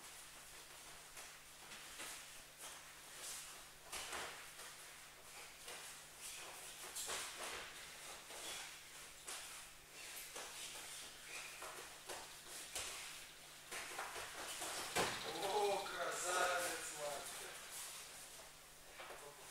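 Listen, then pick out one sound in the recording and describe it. Bare feet shuffle and thump on a soft mat.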